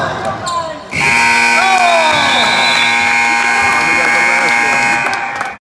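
A scoreboard buzzer sounds steadily and loudly.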